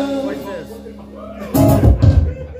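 A man plays an acoustic guitar.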